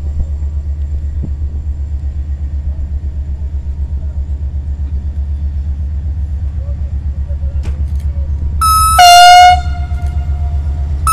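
A locomotive engine rumbles steadily as a train approaches.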